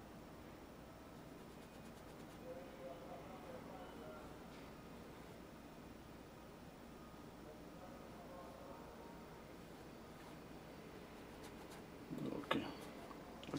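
A brush softly scrapes across a rough canvas.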